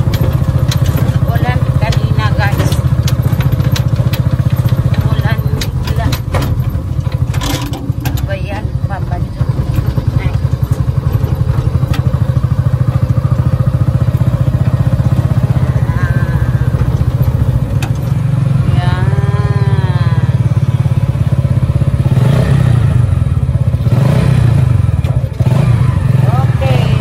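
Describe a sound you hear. A motorcycle engine putters steadily up close.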